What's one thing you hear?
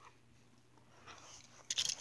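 Plastic toy pieces knock and rustle softly as a hand moves them over carpet.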